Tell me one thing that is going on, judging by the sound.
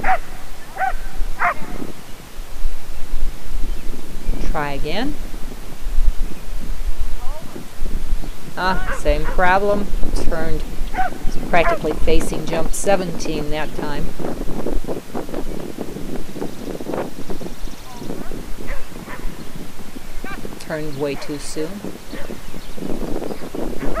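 A man calls out commands to a dog from a distance, outdoors.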